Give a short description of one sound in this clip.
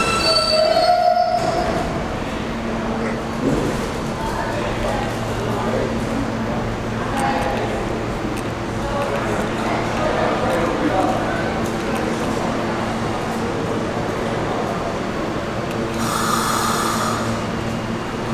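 Metal wheels squeal on the rails.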